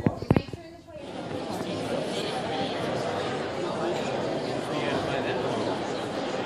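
An elderly woman talks with animation nearby.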